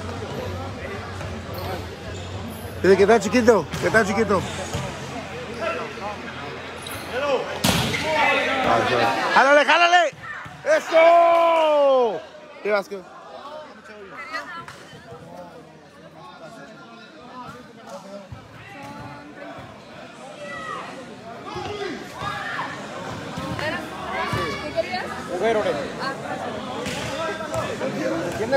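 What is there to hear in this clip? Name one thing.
A crowd of people chatters and cheers loudly in a large echoing hall.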